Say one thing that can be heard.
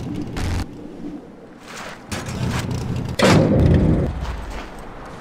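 A buggy engine rumbles and revs.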